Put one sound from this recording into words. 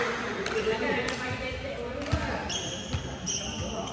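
A volleyball is struck in a large echoing hall.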